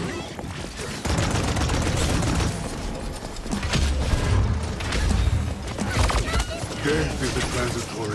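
Game explosions and impacts boom.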